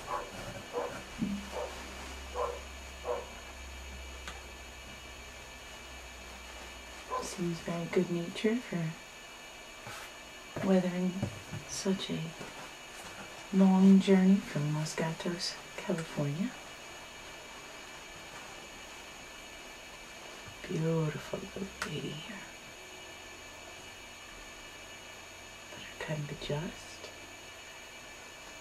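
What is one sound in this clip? Paper towel rustles in hands.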